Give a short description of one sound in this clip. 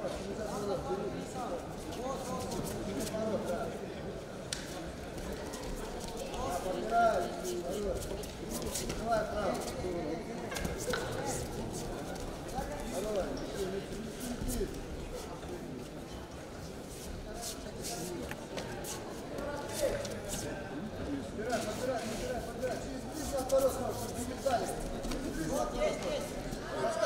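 Bare feet thump and shuffle on a mat.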